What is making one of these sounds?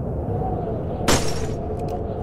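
A pistol fires a single loud shot.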